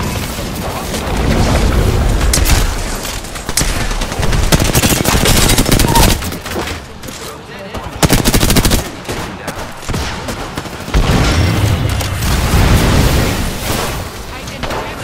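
Rapid gunfire crackles in loud bursts.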